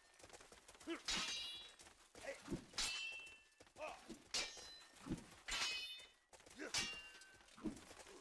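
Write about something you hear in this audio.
Steel swords clash and ring sharply again and again.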